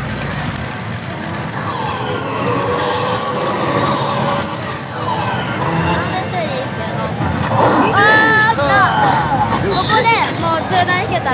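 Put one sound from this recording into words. A slot machine's reels spin and stop with clicks.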